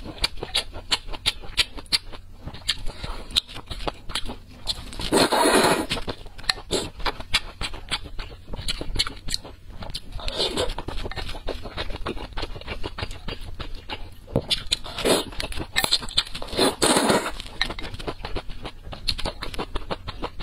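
A young woman chews food wetly and smacks her lips close to a microphone.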